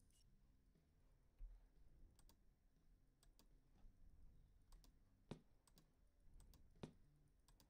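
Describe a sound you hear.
Soft jazz music plays quietly throughout.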